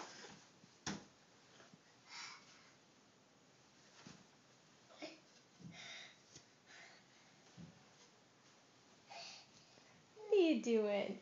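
A young child bumps and rustles against a crib's rails and bedding.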